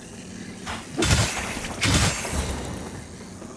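A sword swings and strikes with heavy blows.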